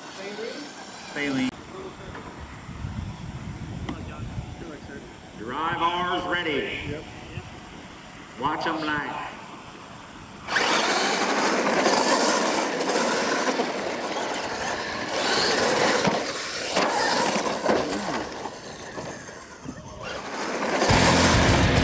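Small electric motors whine as toy trucks race over dirt.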